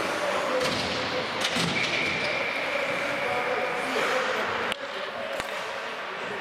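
Hockey sticks clack against the ice.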